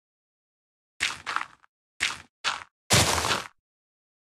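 Soft dirt crunches in short bursts as blocks of earth are dug.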